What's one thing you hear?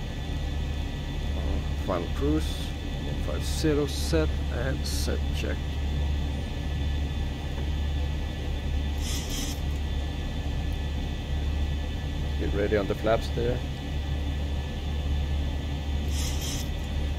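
A steady low hum of aircraft engines fills a cockpit.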